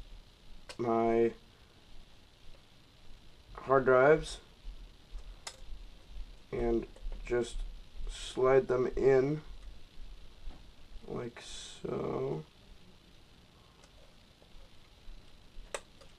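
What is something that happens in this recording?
A plastic drive caddy clicks and rattles in hands.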